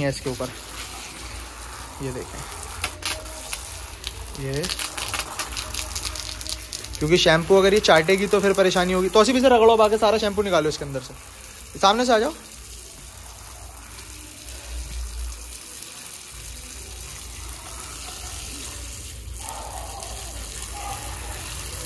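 Water sprays from a hose and splashes on a wet floor.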